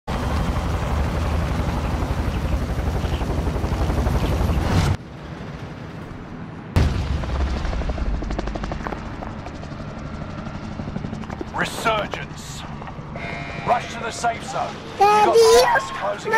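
Helicopter rotors thump and roar loudly.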